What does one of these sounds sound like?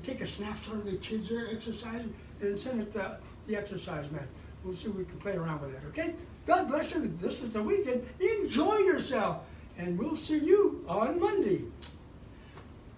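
An elderly man talks energetically close by.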